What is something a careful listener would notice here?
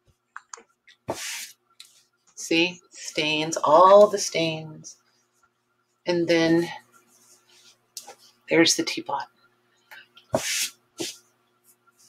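Cloth rustles as hands smooth and shift it.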